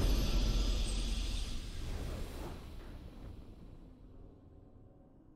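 A booming victory fanfare from a video game swells and then fades away.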